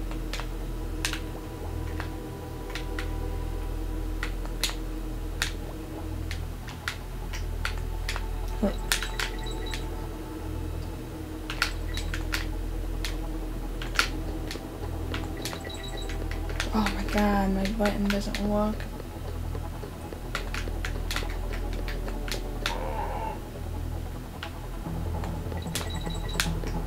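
Short game sound effects click and chime now and then.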